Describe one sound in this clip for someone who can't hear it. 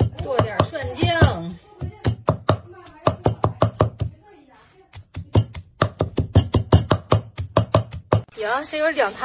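A knife chops rapidly against a wooden board.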